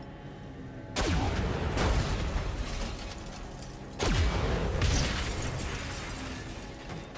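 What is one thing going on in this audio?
Explosions burst and rumble.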